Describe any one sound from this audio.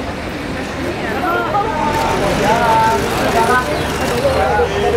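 Young women shout and call out excitedly.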